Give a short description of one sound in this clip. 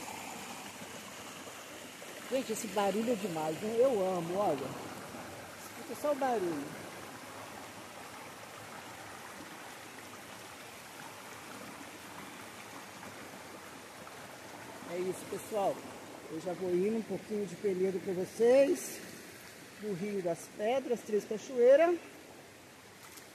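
A stream rushes and splashes over rocks.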